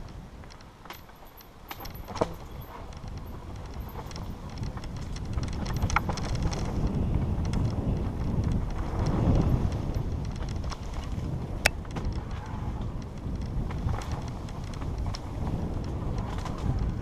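Wind rushes past in heavy, rumbling gusts.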